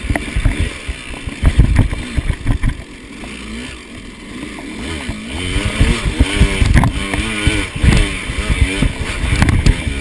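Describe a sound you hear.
A dirt bike thumps and rattles over rocks and roots.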